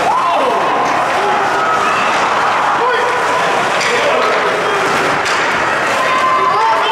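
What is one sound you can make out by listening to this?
Skate blades scrape and hiss across the ice in a large echoing rink.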